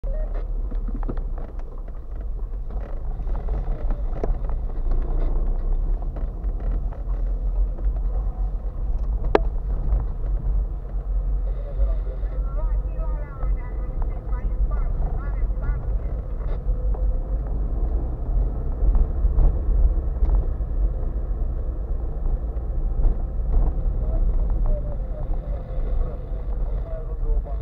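Tyres roll and bump over a rough, wet road.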